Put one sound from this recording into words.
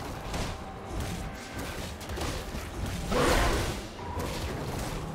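Game spell effects whoosh and crackle as characters fight.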